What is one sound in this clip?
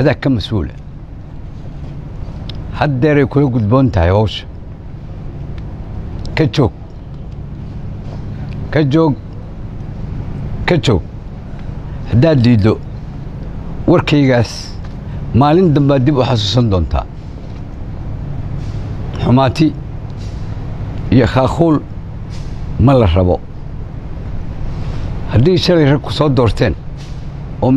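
An elderly man speaks into a microphone, slowly, in short bursts with pauses.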